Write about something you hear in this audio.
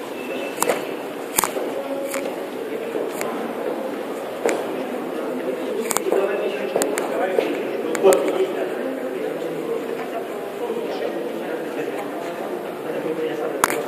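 Several adults talk at a distance in a large echoing hall.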